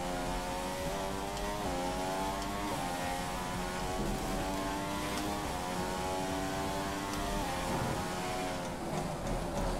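A racing car engine screams at high revs, rising in pitch and dropping briefly with each gear change.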